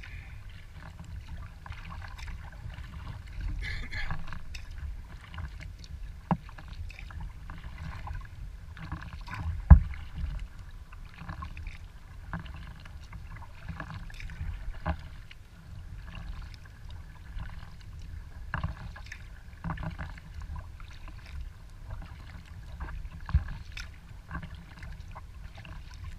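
Water laps gently against a kayak's hull.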